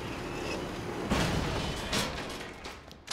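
A metal elevator gate rattles open.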